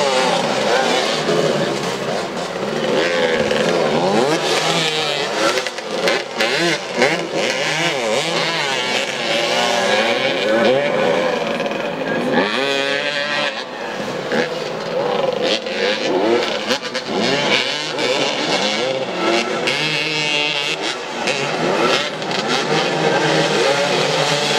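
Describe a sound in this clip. Several motorcycle engines rev and whine outdoors, rising and falling in pitch.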